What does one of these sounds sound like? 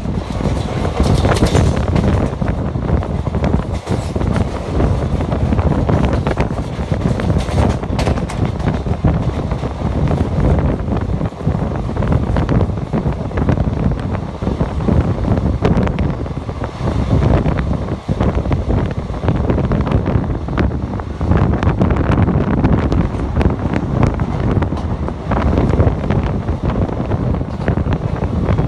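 Wind rushes past an open train door.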